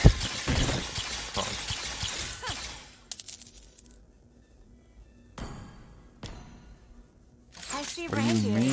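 Game combat sound effects clash and whoosh.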